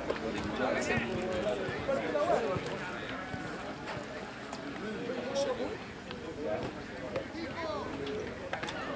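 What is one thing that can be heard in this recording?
Spectators chatter and call out close by, outdoors.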